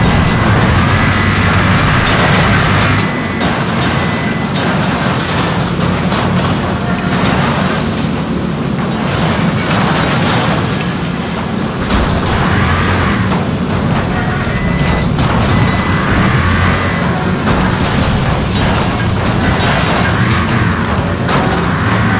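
Heavy truck engines roar and rumble steadily.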